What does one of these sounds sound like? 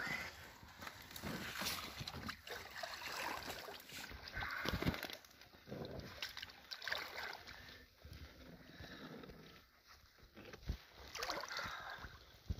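Water splashes as a fish is slid into a wet mat.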